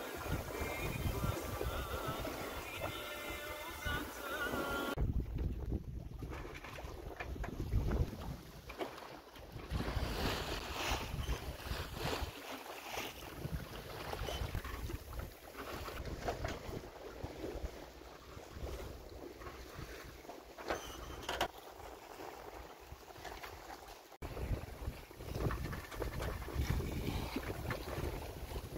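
Wind blows hard across the open sea, buffeting the microphone.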